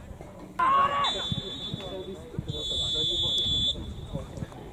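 A referee's whistle blows in long blasts.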